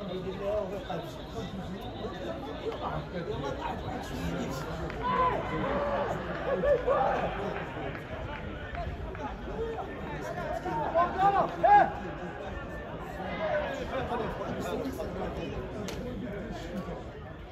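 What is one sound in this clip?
Young men shout and call out to each other from a distance outdoors.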